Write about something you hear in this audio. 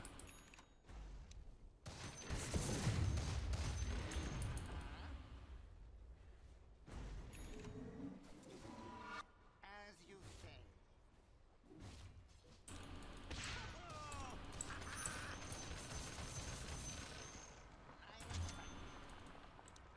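Game sound effects of spells and blows burst and clash.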